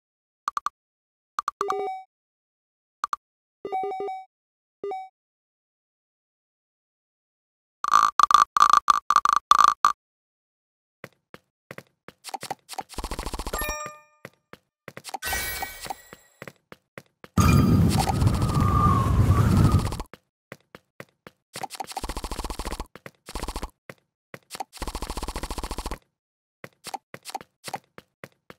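Short electronic chimes and jingles play from a tablet game.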